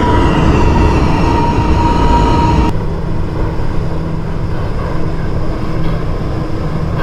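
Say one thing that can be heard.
A subway train rumbles along the tracks through a tunnel.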